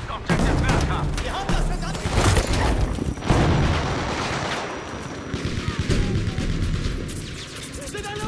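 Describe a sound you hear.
Gunfire rattles loudly and rapidly.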